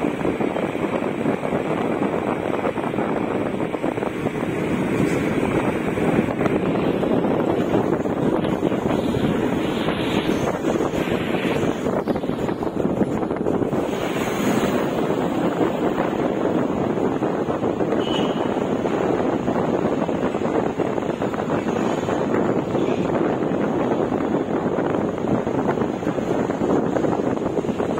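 A motorcycle engine hums steadily as it rides along a road.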